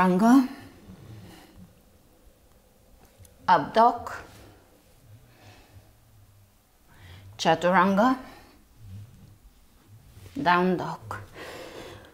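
A young woman speaks calmly in short phrases.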